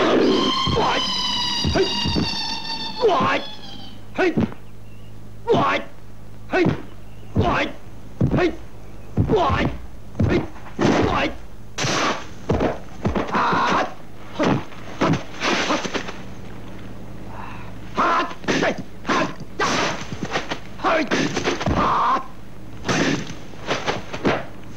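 Sharp punches and kicks whoosh and thud in quick succession.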